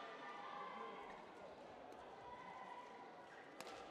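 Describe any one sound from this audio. A shuttlecock is struck sharply with a racket, back and forth.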